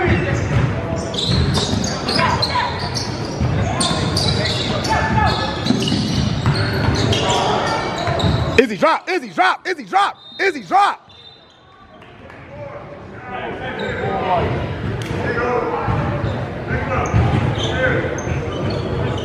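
Young players shout and call out in a large echoing gym.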